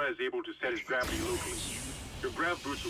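Steam hisses out in a loud burst.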